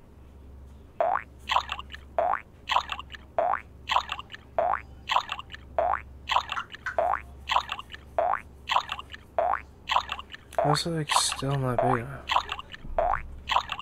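Bouncy, upbeat game music plays with quick repeating notes.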